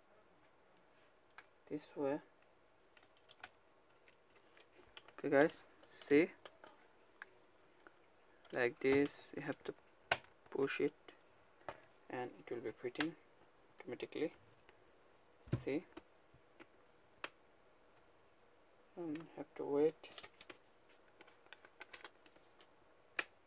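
Plastic parts click and creak as they are pressed and pried apart.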